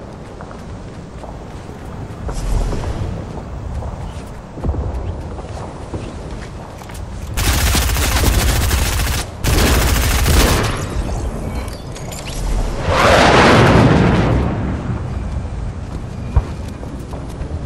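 Footsteps thud on a dirt floor as a game character runs.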